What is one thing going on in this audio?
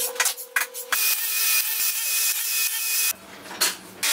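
A table saw whines as it cuts through wood.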